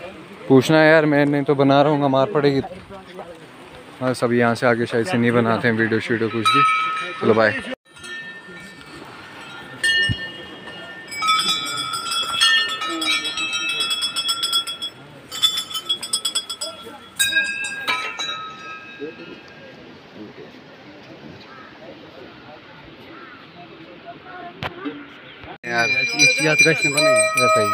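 A group of men chant loudly together close by.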